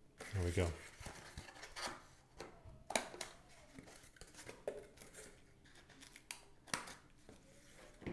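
Scissors snip through cardboard.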